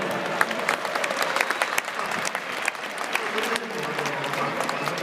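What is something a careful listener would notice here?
Fans clap their hands in rhythm.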